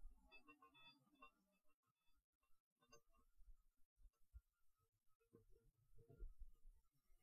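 Glass orbs clink and tap softly against each other close to a microphone.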